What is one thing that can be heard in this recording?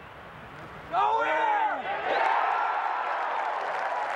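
A large crowd cheers and applauds outdoors.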